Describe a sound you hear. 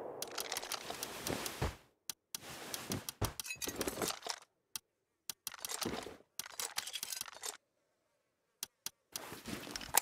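Items click softly as they are moved around.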